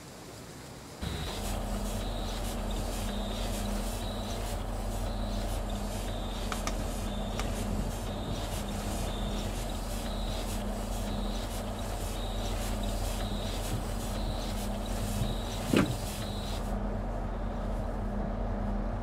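A train's electric motors hum steadily from inside the driver's cab.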